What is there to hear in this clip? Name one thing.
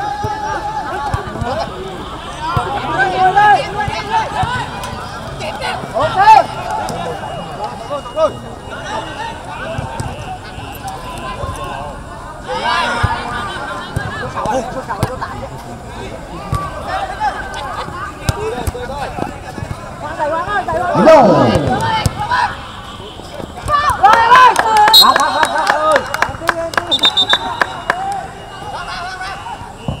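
A crowd of spectators shouts and cheers nearby.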